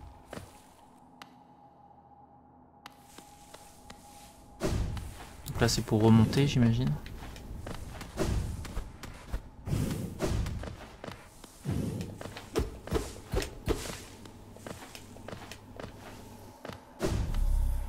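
Light footsteps patter and thud.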